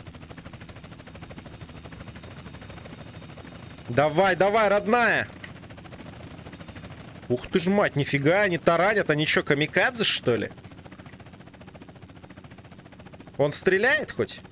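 A helicopter's rotor whirs and chops steadily.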